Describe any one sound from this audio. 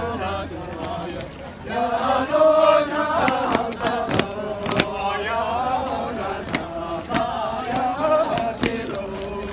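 Feet stamp and shuffle on pavement as dancers step.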